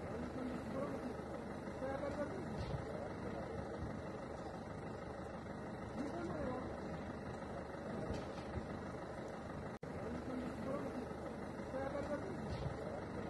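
A car fire roars and crackles.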